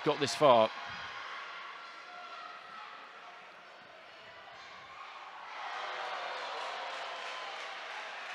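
A crowd murmurs and cheers in a large echoing arena, swelling louder.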